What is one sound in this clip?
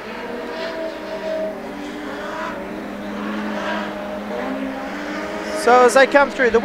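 Race car engines roar around a dirt track.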